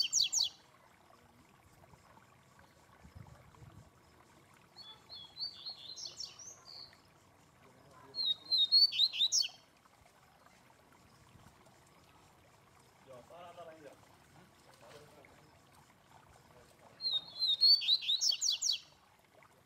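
A caged songbird sings short, bright bursts of trilling notes.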